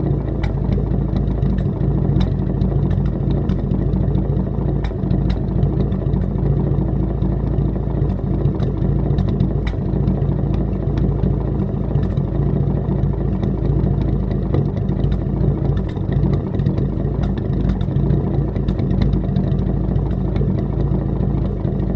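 An old car engine idles close by with a low, steady, chugging rumble from the exhaust.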